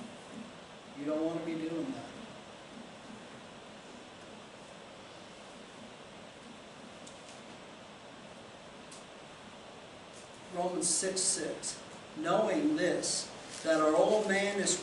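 A middle-aged man speaks calmly and close by, with long pauses.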